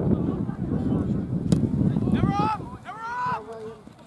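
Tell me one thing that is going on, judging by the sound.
A soccer ball is kicked with a dull thud.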